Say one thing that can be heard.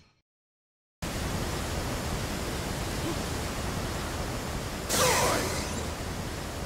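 A waterfall roars steadily.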